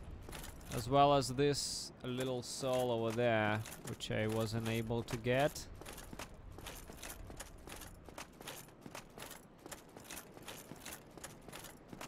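Footsteps tap steadily and quickly on stone.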